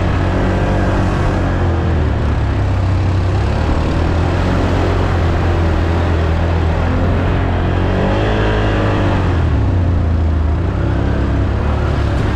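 Tyres rumble over bumpy dirt and grass.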